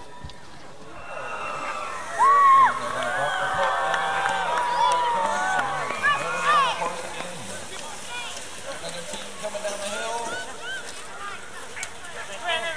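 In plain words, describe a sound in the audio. Excited sled dogs yelp and whine.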